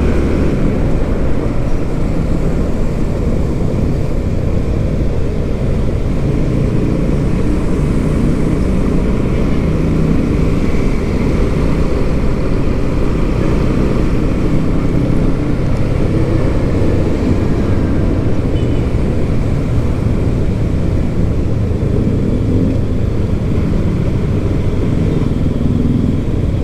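Wind rumbles steadily against a moving microphone.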